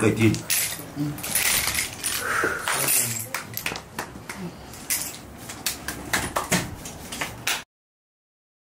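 Small objects rattle and clatter as they are scattered on the floor.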